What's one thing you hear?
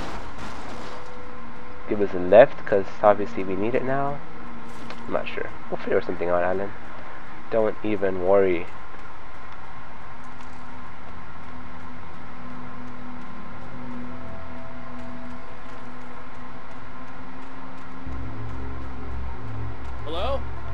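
Footsteps run quickly over rough, leafy ground.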